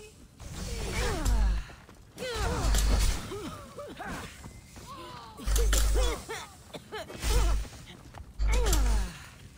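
Swords clash and thud in a fight.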